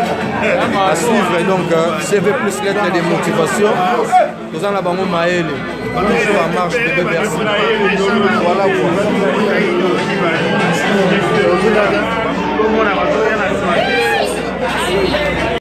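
A crowd chatters in the background of a busy room.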